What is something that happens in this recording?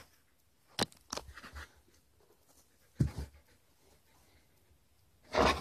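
A puppy pants close by.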